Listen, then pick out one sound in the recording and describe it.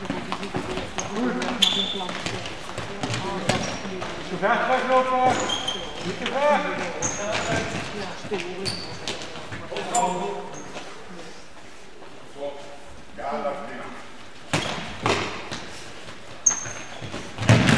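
Sneakers squeak sharply on the hall floor.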